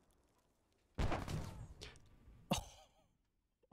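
A loud explosion booms nearby and rumbles away.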